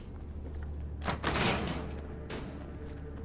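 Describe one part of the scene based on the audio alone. A metal security gate clanks shut.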